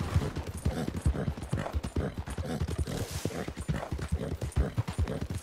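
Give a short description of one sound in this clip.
A horse's hooves thud steadily on a dirt path.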